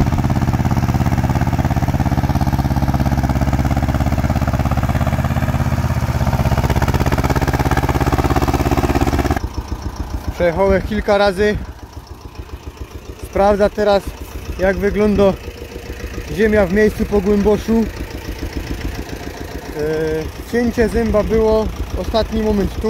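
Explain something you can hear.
A tractor engine chugs and rumbles steadily nearby.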